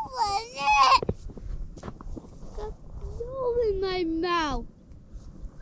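A young child shouts in a high, excited voice nearby.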